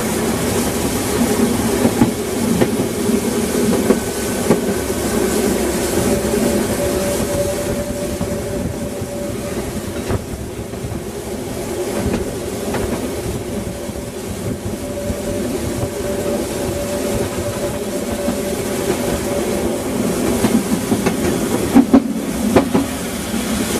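A steam train rumbles and clatters steadily along the track.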